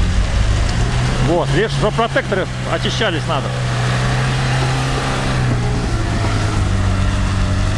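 Tyres spin and squelch through wet mud.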